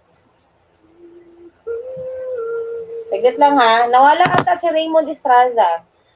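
A young woman sings loudly through an online call.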